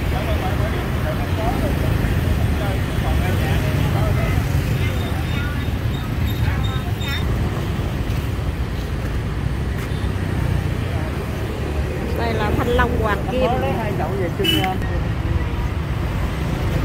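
A man and a woman talk casually in the background.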